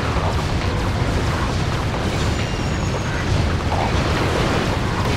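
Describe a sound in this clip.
A heavy robot's engine rumbles steadily.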